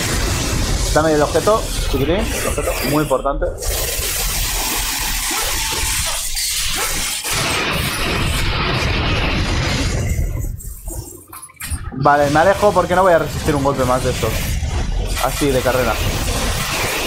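Heavy creatures growl and screech.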